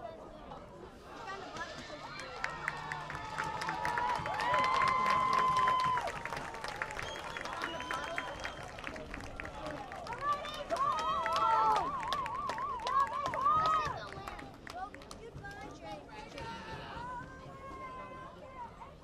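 A crowd of young people cheers and shouts outdoors.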